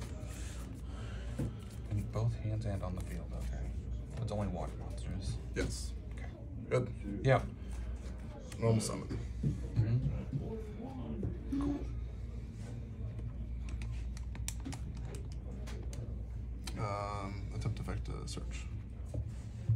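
Playing cards slide and tap softly on a mat.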